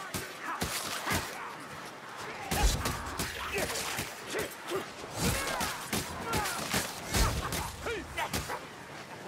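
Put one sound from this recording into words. Creatures snarl and shriek in pain.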